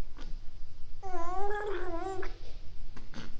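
A baby hums a high, wavering note.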